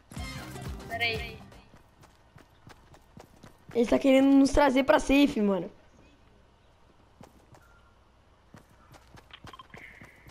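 Footsteps tap lightly on pavement.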